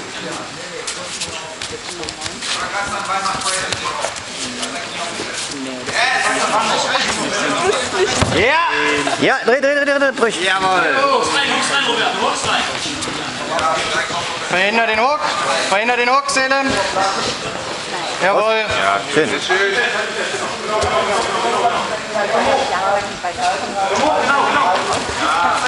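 A crowd of people talks and shouts in a large echoing hall.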